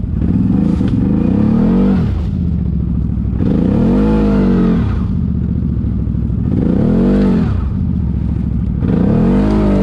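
Leaves and twigs crunch under tyres.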